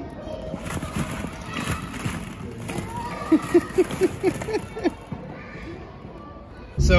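Plastic balls rattle and clatter as a toddler moves through them.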